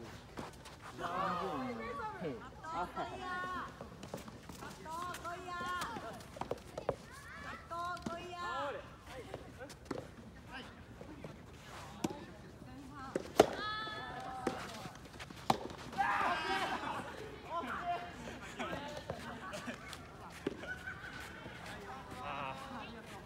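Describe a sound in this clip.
Young men and women call out and chat across an outdoor court.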